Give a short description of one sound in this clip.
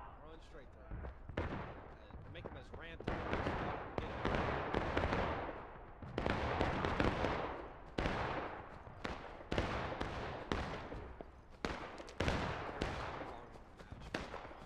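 Rifle shots and cannon fire crack and boom repeatedly, rolling away in long echoes outdoors.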